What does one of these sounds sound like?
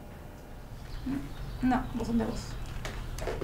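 A woman speaks on a phone.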